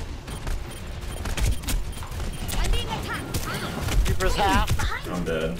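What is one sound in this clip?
Video game weapon effects zap and crackle.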